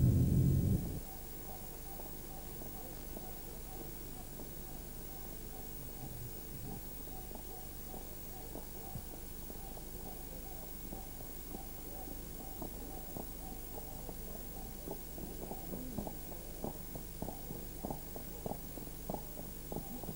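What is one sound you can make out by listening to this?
Horse hooves clop on a paved road.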